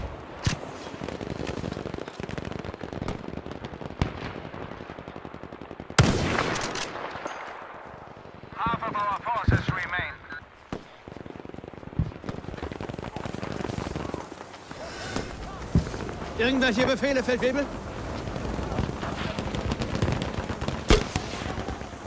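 A rifle fires sharp single shots, with short gaps between them.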